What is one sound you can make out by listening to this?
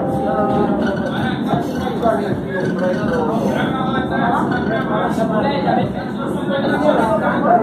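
A passing train rumbles loudly along the tracks close by.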